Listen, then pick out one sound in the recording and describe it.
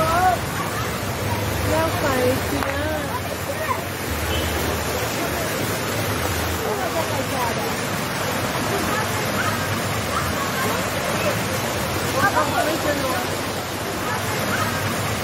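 Fountain water splashes and gurgles steadily.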